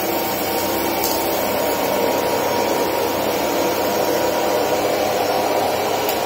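A vacuum cleaner sucks up grit from a carpet.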